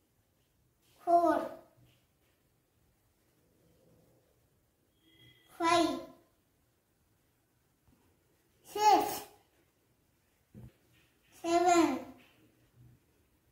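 A toddler calls out single words close by, one at a time.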